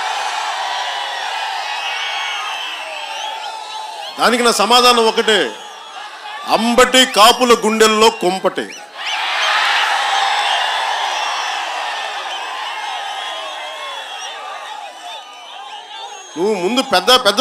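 A large crowd cheers and roars outdoors.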